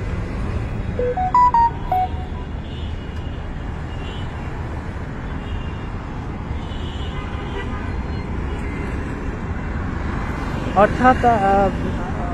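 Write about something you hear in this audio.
Car horns honk in short bursts nearby.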